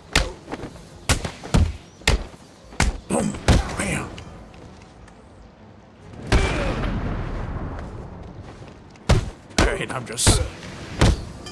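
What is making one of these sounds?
Heavy punches and kicks land with loud thuds.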